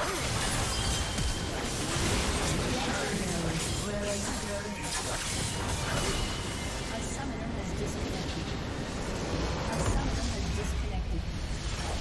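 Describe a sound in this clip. Magic blasts and hits crackle and bang in a fierce battle.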